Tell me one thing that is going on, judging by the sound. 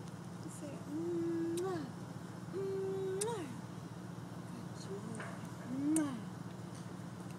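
A small child babbles softly close by.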